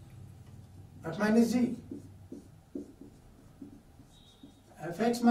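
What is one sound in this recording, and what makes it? A man speaks calmly, as if teaching, close by.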